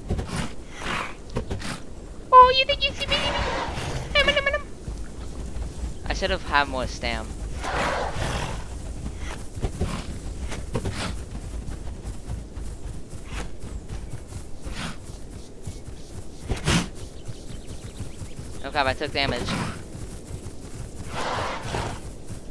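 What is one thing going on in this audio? Heavy footsteps pad across dry ground and grass.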